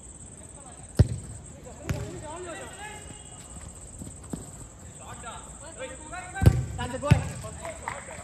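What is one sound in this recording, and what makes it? A football is kicked with sharp thuds.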